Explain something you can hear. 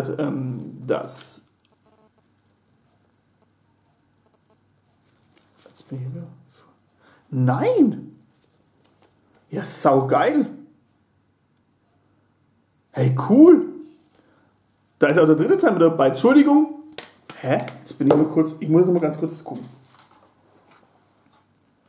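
A man talks calmly and close by, in short bursts.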